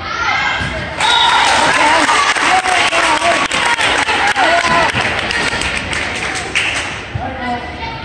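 Spectators clap their hands.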